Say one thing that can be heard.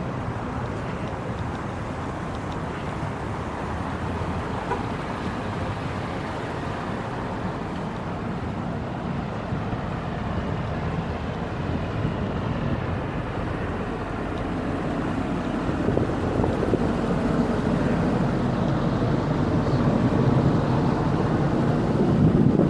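Wind rumbles steadily outdoors, growing stronger.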